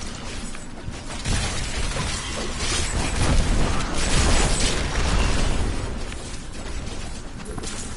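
Magic spells crackle and burst.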